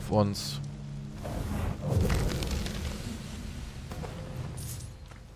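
A fiery blast whooshes and crackles.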